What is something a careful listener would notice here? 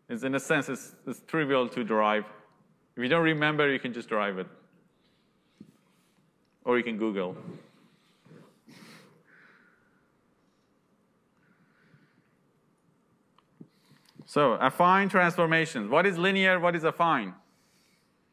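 A man lectures into a microphone, speaking calmly with pauses.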